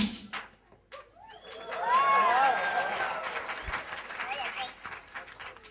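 Young children shout and squeal excitedly nearby.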